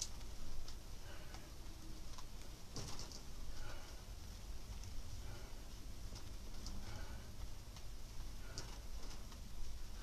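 A person breathes hard with effort during exercise.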